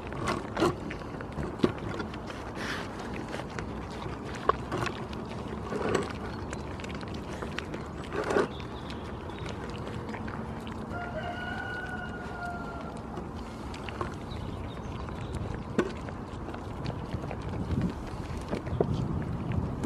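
Goats' snouts knock and bump against a board close by.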